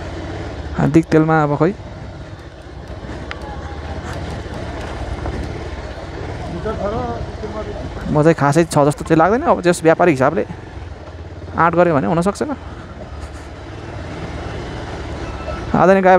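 A motorcycle engine hums steadily at low speed.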